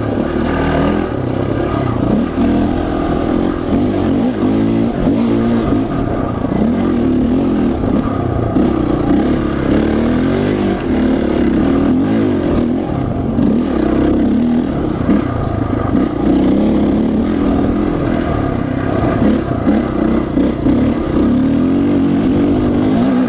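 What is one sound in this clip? A dirt bike engine revs loudly up and down, close by.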